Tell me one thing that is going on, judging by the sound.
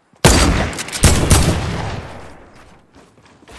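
A shotgun fires loud blasts that echo away.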